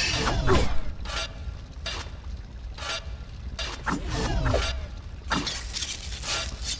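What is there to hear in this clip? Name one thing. Steel swords clang against each other in short, ringing strikes.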